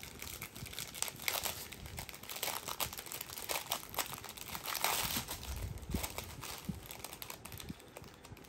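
A plastic bag crinkles and rustles in someone's hands.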